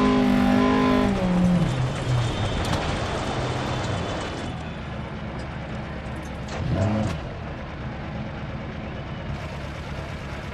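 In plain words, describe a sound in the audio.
A rally car engine roars loudly, then drops in pitch as the car slows.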